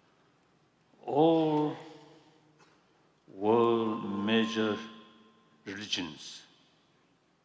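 An elderly man speaks slowly in short phrases through a microphone, echoing in a large hall.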